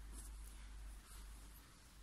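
Thread rustles softly as it is pulled through cloth.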